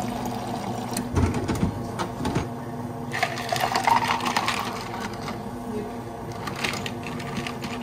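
Ice cubes clatter into a plastic cup.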